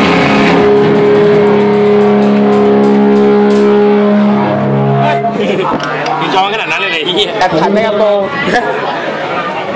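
A distorted electric guitar plays loudly through an amplifier.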